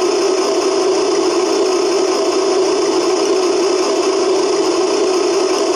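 A small electric servo whirs as a model loader arm lifts.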